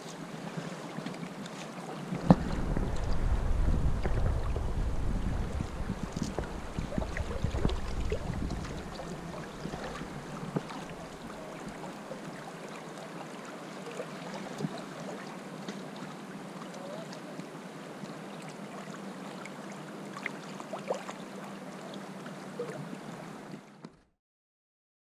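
River water rushes and ripples steadily close by.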